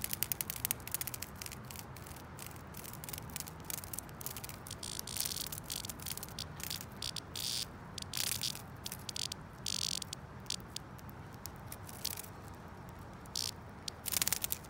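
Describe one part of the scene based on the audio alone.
A hornet crunches and crackles as it chews its prey up close.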